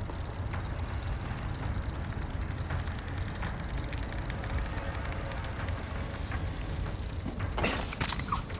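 A cable whirs as a person slides down a line.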